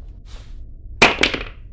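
Smoke bursts out with a sudden hiss.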